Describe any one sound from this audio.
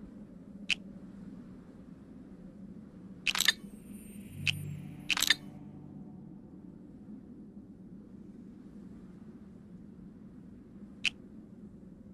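Short clicks sound as game pieces are selected.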